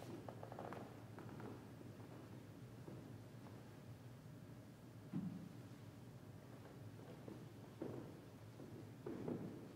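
Soft footsteps shuffle across a carpeted floor.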